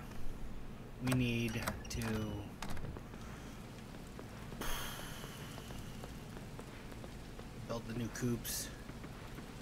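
A man speaks casually into a microphone, close up.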